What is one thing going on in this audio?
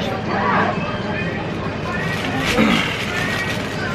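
Paper wrapping rustles and crinkles.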